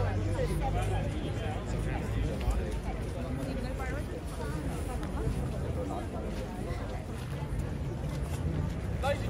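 A crowd of men and women chatter nearby, outdoors.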